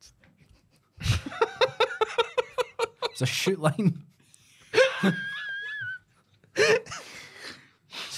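Young men laugh heartily.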